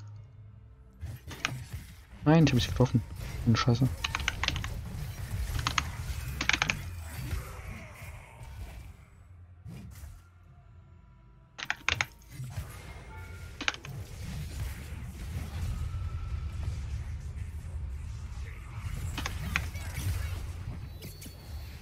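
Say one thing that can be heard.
Magic spells whoosh and clash in a fast fight.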